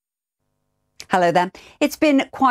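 A woman speaks clearly and calmly into a microphone.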